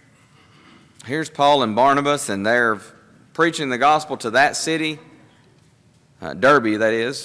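A man speaks calmly through a microphone in an echoing hall, pausing between phrases.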